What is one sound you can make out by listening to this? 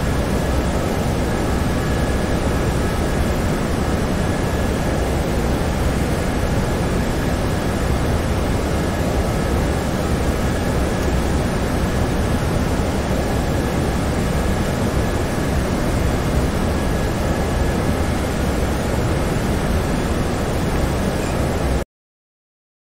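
A jet airliner's engines roar steadily and evenly.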